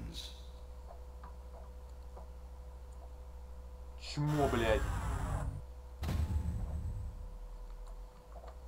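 Low electronic game music drones steadily.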